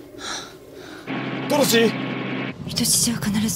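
A man speaks urgently over a phone.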